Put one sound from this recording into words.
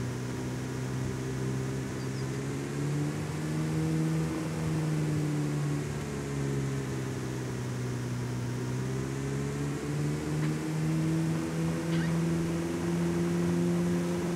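A sports car engine hums steadily, rising and falling as it speeds up and slows.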